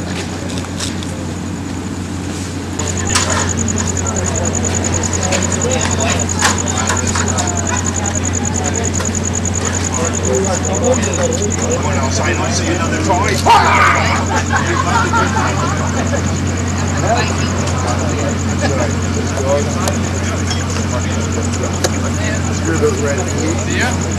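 Several adult men talk among themselves outdoors, at a short distance.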